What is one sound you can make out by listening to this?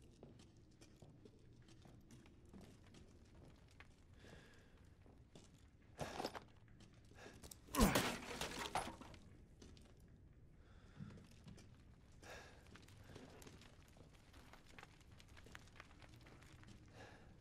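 A young man talks quietly into a headset microphone.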